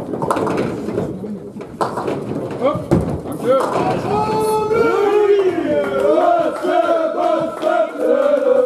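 Bowling balls rumble down wooden lanes.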